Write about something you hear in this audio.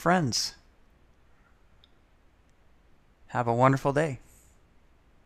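A man speaks softly and calmly, close by.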